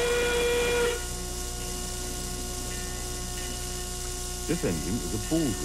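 A steam locomotive idles with a low rumble.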